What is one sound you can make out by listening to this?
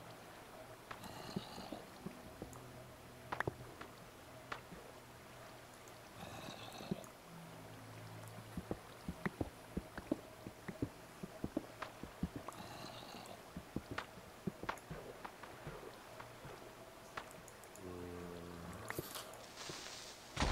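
A pickaxe chips and knocks at stone in quick taps.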